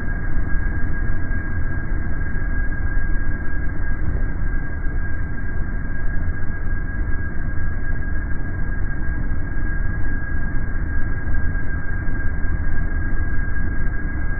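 Jet engines roar steadily as a jet taxis.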